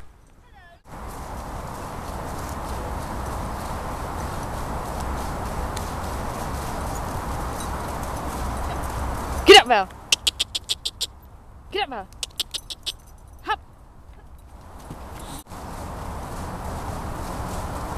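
A pony's hooves thud on grass as it canters past.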